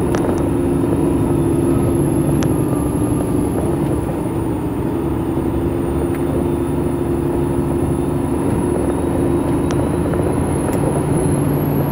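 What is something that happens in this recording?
A truck's cab rattles and knocks over a bumpy gravel road.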